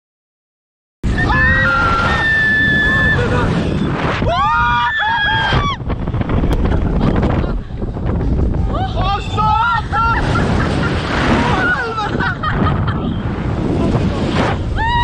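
A young woman screams and laughs loudly up close.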